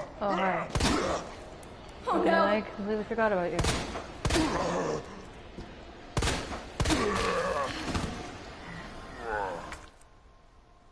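A young woman shouts excitedly, close to a microphone.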